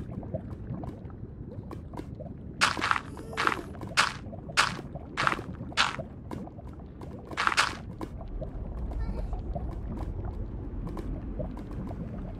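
Lava bubbles and pops softly in the background.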